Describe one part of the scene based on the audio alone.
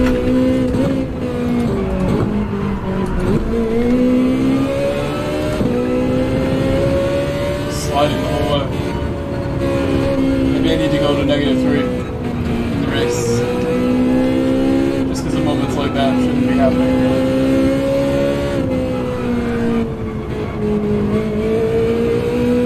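A racing car engine drones loudly and steadily, its pitch rising and dipping with the gears.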